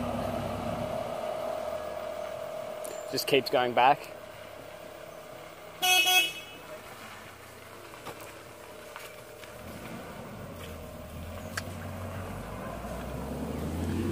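A van engine hums as the van drives slowly by.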